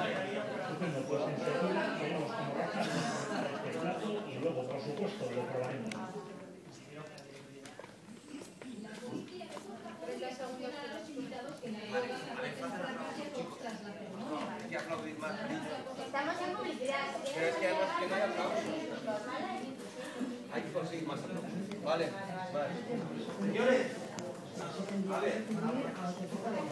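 Several men talk with each other nearby.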